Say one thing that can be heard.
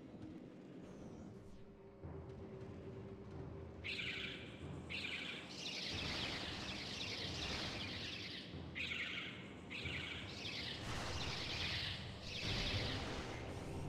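A metal ball rolls and rumbles.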